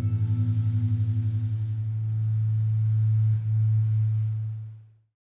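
A bass guitar holds a low, throbbing note through an amplifier that rings on and fades away.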